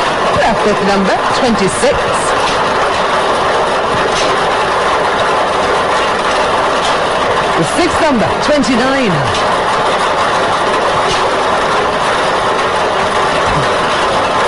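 Lottery balls rattle and tumble steadily in an air-blown drum.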